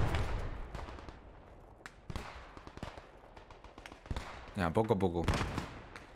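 Footsteps crunch on dry dirt.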